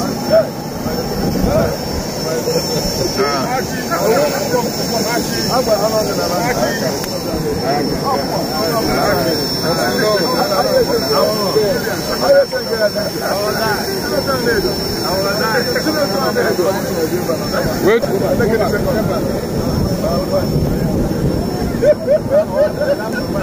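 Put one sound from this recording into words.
A crowd of men talk and call out over one another outdoors.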